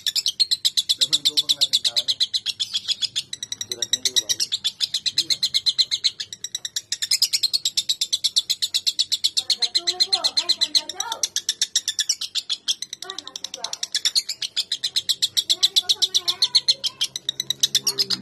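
A lovebird chirps in a rapid, shrill, buzzing chatter close by.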